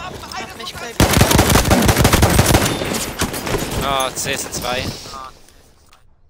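Gunfire bursts out in rapid loud shots.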